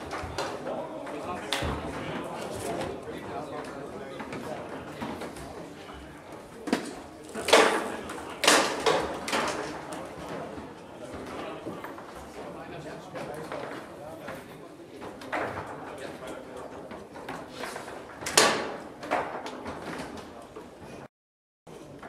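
A crowd murmurs in a large room.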